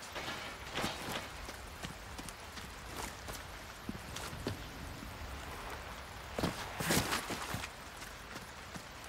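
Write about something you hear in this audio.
Footsteps crunch on rough stone and dirt.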